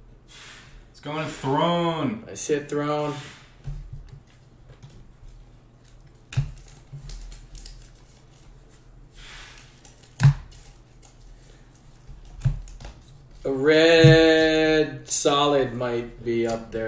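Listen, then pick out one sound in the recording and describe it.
Trading cards rustle and snap as hands flip through them.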